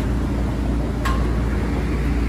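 A metal part clinks sharply once.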